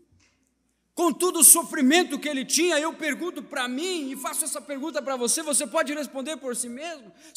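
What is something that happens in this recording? A man sings with feeling through a microphone.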